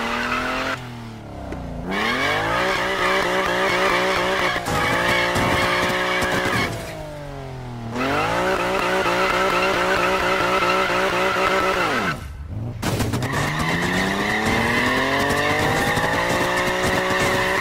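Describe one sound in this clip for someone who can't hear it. A car engine revs hard and drops repeatedly.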